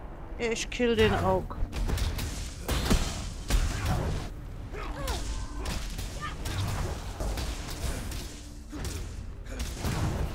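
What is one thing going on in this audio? A fiery spell bursts and crackles.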